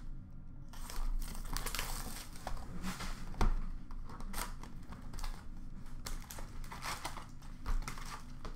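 Hands tear open trading card pack wrappers with a crinkling rustle.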